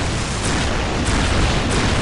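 Energy weapons fire rapid crackling bolts.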